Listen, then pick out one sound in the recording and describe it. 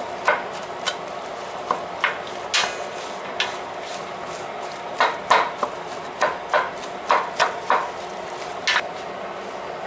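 Hands squish and mix raw ground meat in a metal pot.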